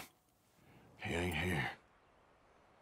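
Another man answers nervously, close by.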